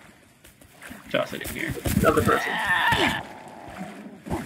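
A creature growls and snarls close by.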